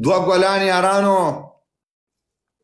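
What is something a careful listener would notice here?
A man sings a short melodic phrase close to a microphone.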